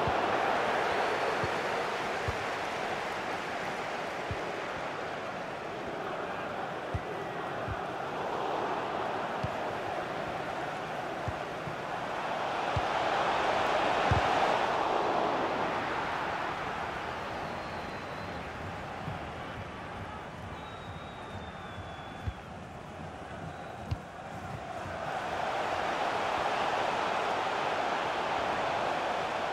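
A stadium crowd roars and murmurs steadily, swelling and fading.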